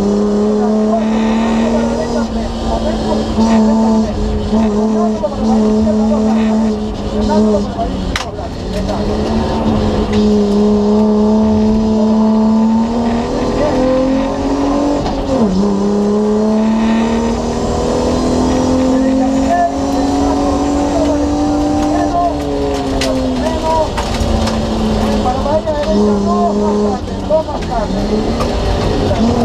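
A car engine roars loudly, rising and falling in pitch as it revs up and shifts gears.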